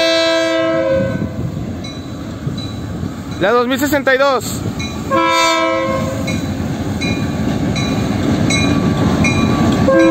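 A diesel locomotive engine rumbles, growing louder as it approaches.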